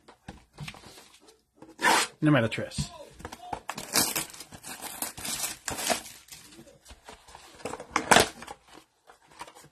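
A cardboard box rustles and scrapes as it is turned over in hands.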